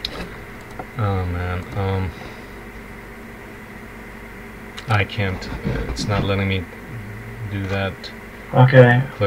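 A man speaks calmly over an online call, in short bursts.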